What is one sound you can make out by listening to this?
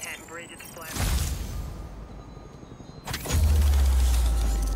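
A deep electronic boom rumbles and hums on.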